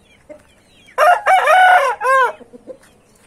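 A rooster crows loudly close by.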